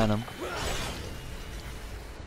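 Flames roar and crackle in a burst.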